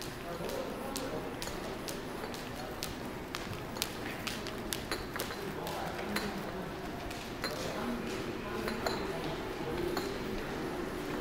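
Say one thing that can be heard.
Footsteps click on a hard floor in an echoing hall.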